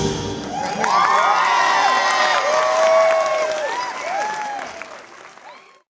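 A group of children sing and shout loudly in an echoing hall.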